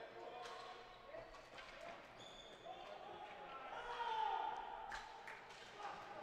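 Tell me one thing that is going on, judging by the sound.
A ball clacks against sticks and the boards.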